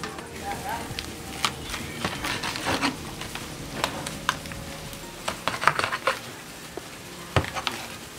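A knife cuts through crisp roast skin.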